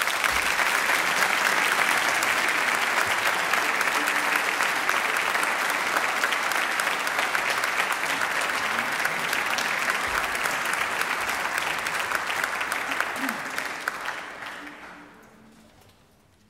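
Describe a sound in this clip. An audience applauds loudly in a large hall and the applause fades away.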